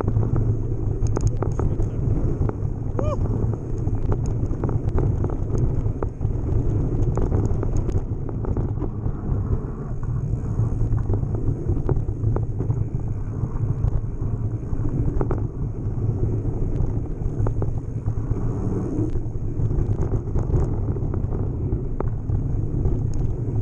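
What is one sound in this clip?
Wind rushes loudly past a fast-moving bicycle.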